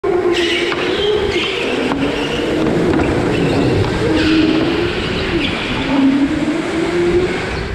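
Go-kart engines whine steadily close by.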